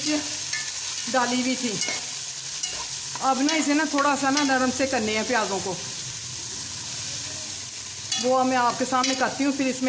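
A metal spatula scrapes and stirs food in a metal pot.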